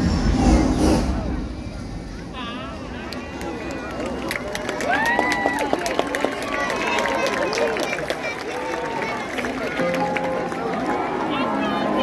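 Fireworks boom and crackle in the distance.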